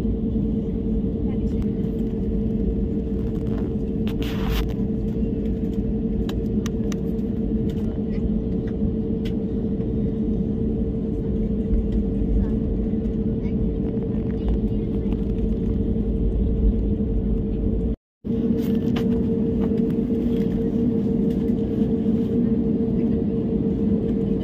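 Aircraft wheels rumble over the taxiway.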